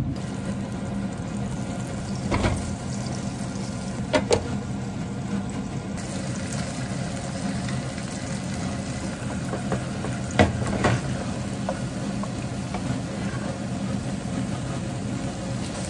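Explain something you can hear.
A spatula scrapes and clicks against a pan.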